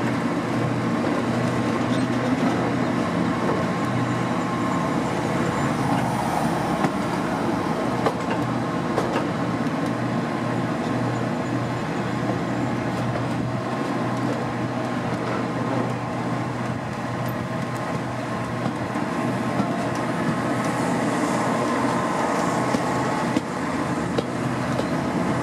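A steam train's carriages rumble and clatter steadily along the track close by.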